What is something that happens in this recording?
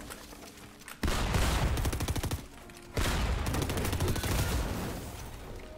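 Wooden building pieces clatter rapidly into place.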